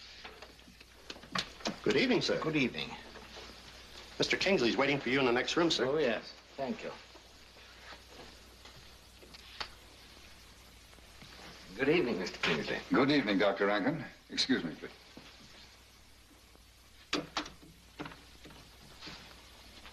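A door opens and closes.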